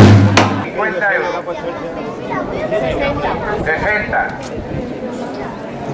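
A crowd of men and women chatters outdoors.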